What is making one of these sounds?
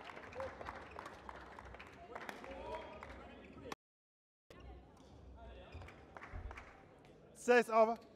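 Badminton rackets strike a shuttlecock in a rally.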